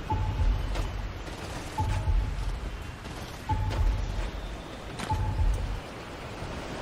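A gun fires in short bursts.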